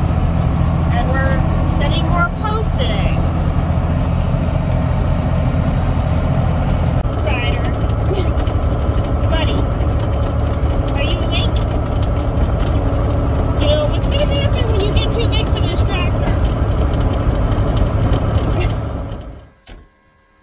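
A tractor engine rumbles steadily inside a cab.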